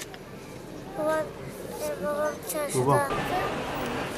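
A young girl speaks softly close by.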